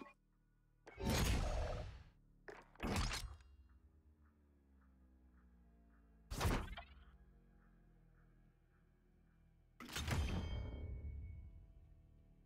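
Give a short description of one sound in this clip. Loud whooshing swells sound as menus change.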